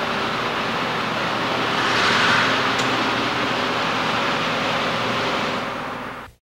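A car engine hums as a car drives slowly past and away.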